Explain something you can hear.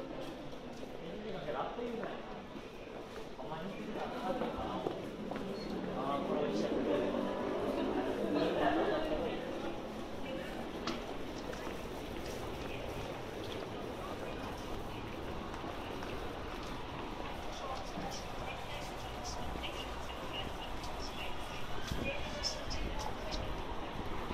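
A crowd of people chatters nearby in a busy street.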